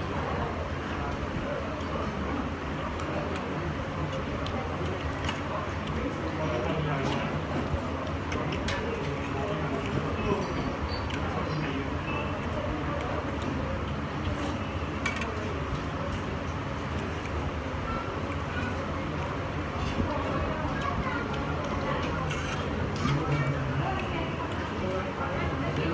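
A young man slurps and chews food close by.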